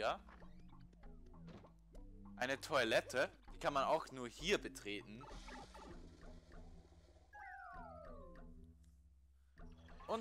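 Cheerful video game music plays.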